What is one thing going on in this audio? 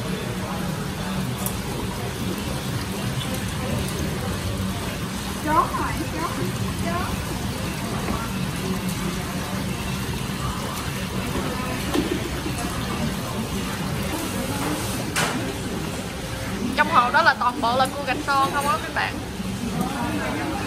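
Water bubbles and splashes steadily in a tank.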